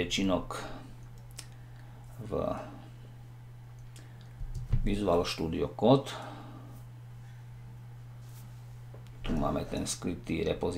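A middle-aged man speaks calmly and closely into a microphone, in short bursts.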